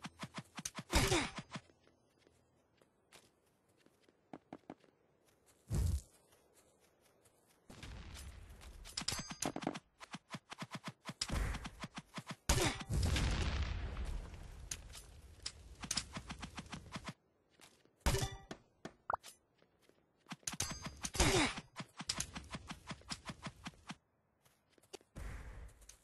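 Blocks are placed with rapid, sharp clicks.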